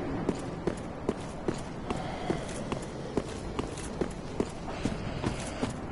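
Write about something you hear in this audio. Armored footsteps thud steadily on stone.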